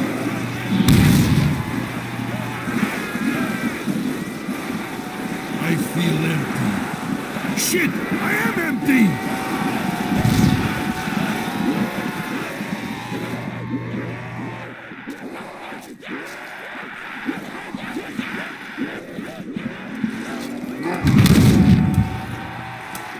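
A weapon fires booming electric blasts.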